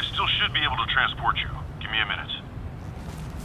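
A man speaks in a low, gruff voice close by.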